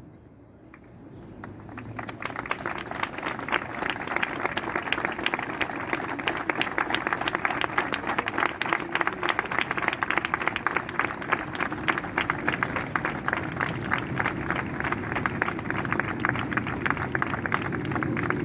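A large crowd applauds steadily outdoors.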